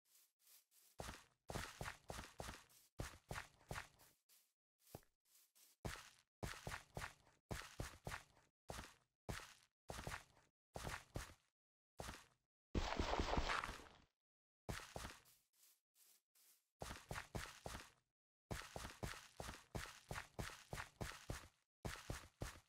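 Footsteps crunch steadily over soft ground and leaves.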